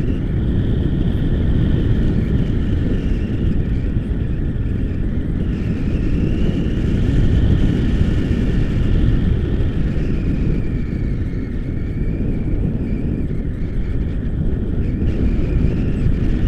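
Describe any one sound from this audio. Strong wind roars and buffets the microphone.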